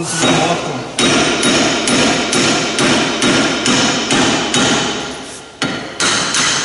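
A ratchet wrench clicks rapidly against metal.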